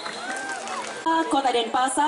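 A woman speaks into a microphone, amplified over loudspeakers.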